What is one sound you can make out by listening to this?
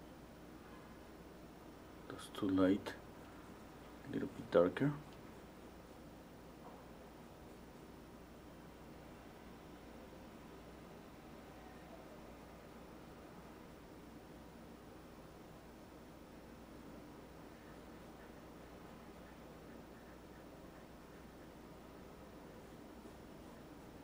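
A brush strokes softly across a canvas.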